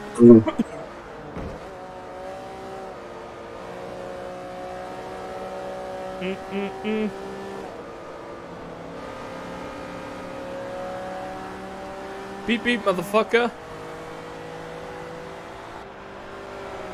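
A race car engine roars steadily, its pitch shifting as the car speeds up and slows down.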